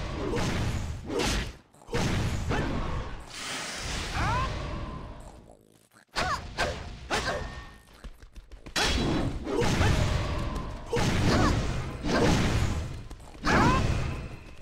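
Magic spells burst and whoosh in quick bursts.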